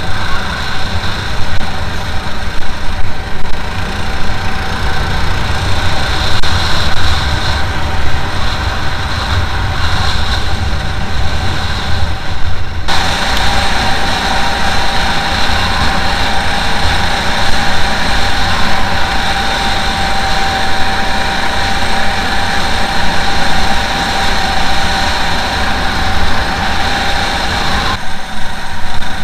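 A motorbike engine drones steadily as it rides over rough ground.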